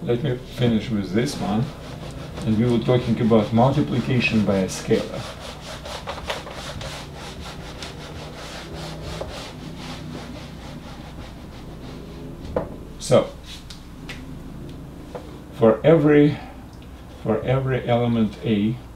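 An elderly man speaks calmly and explains, close by.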